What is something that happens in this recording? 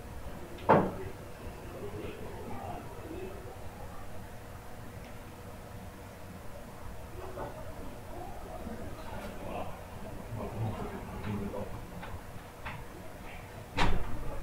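Small objects knock against a table top.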